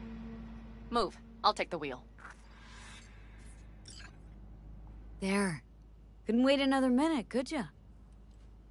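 A woman speaks calmly.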